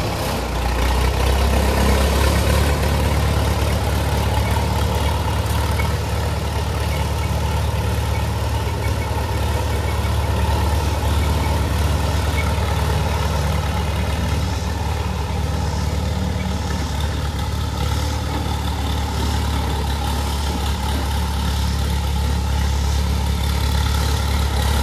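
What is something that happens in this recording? An old tractor engine chugs steadily up close.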